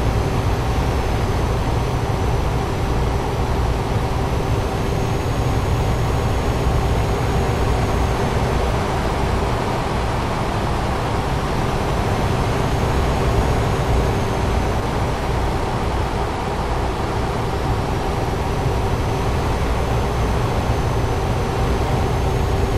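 A truck engine drones steadily while driving.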